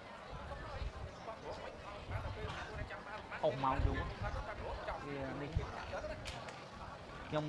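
A large crowd murmurs in the background.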